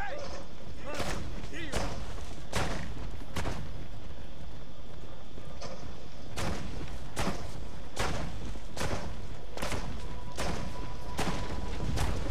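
Heavy gunshots crack repeatedly.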